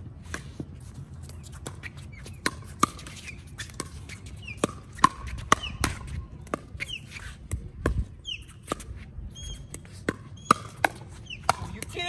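Paddles hit a plastic ball with sharp pops.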